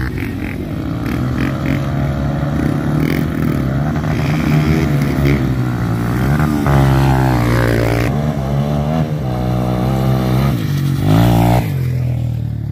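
A dirt bike engine roars and revs loudly, passing close by.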